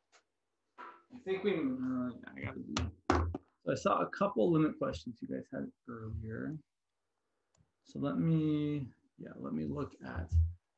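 A man speaks close by, calmly explaining.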